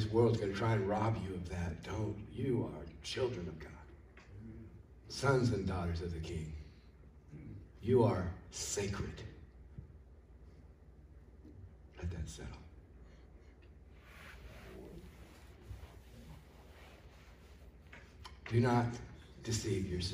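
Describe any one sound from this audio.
An elderly man speaks with animation through a microphone, with pauses, in a large echoing hall.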